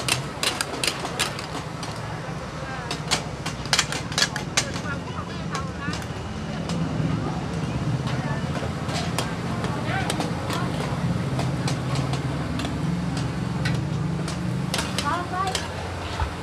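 Gas burners roar steadily.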